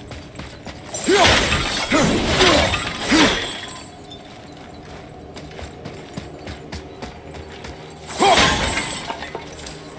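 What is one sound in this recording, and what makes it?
An axe whooshes through the air with a fiery rush.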